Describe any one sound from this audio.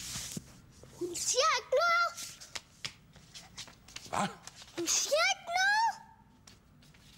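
A young boy speaks loudly with animation.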